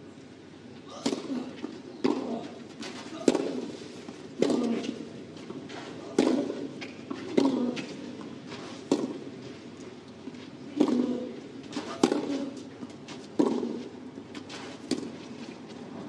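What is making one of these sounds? Tennis rackets strike a ball back and forth in a steady rally.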